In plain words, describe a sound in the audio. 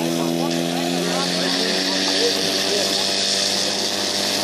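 Water jets hiss from fire hoses.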